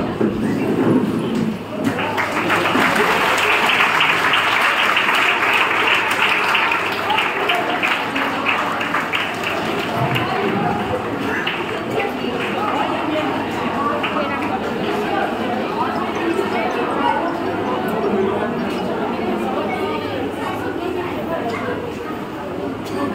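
A crowd of children chatters in the background.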